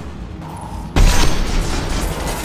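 A rifle fires a single loud, booming shot.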